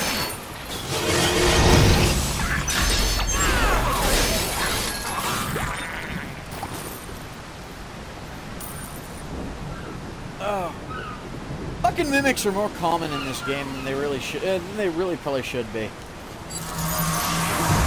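Magic spells whoosh and chime in a game.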